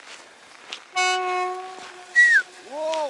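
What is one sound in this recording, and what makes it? A train horn blares in the distance.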